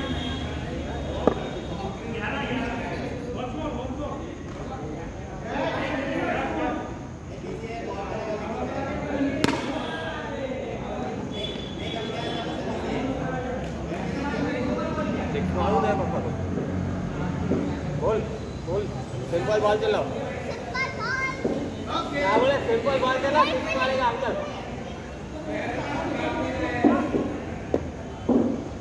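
Men talk and call out to each other at a distance.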